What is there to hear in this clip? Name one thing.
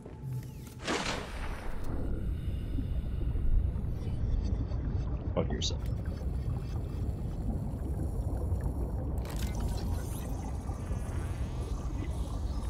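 Water rumbles low and steadily all around underwater.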